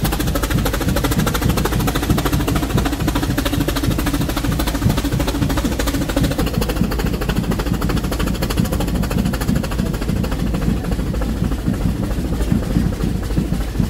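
Train wheels rumble and clatter on the track.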